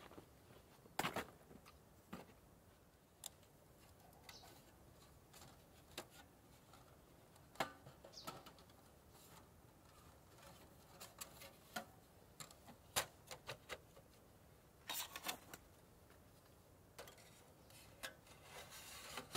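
Thin metal plates clink and clatter as a small stove is assembled.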